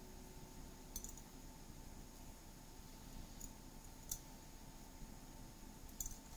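A small metal tool clicks against a hard tile.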